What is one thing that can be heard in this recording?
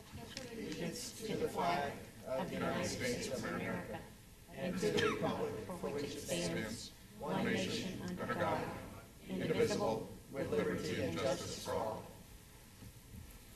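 A group of people recite together in unison.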